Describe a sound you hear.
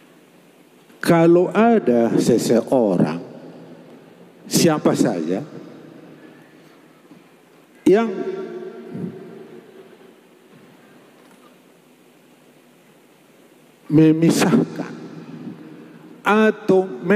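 A middle-aged man sings loudly into a microphone over a loudspeaker, in bursts with pauses, echoing in a large hall.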